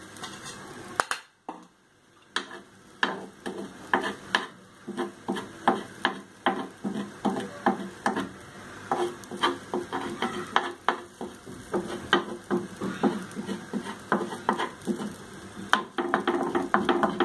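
Egg sizzles in a hot pan.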